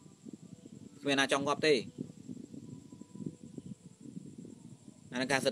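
A young man speaks calmly and close by, in short phrases.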